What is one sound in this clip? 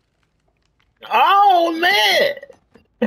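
A man speaks loudly and forcefully.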